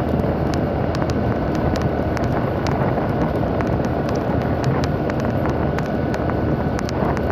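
A motorcycle cruises along a road at speed.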